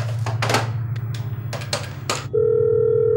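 Telephone keys beep as a number is dialled.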